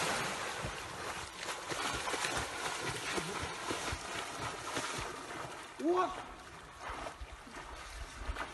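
A swimmer splashes steadily through the water.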